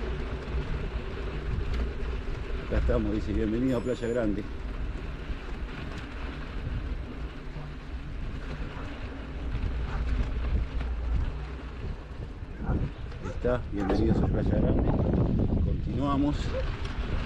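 Tyres crunch over a dirt road.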